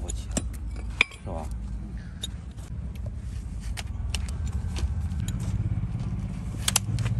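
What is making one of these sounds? Long-handled shears snip and crunch through a horse's hoof.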